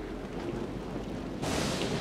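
A boy's footsteps thud down wooden stairs.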